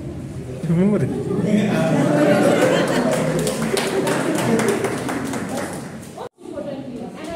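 A young woman speaks with animation to a group.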